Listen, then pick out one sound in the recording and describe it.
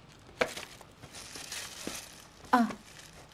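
A plastic bag rustles in someone's hands.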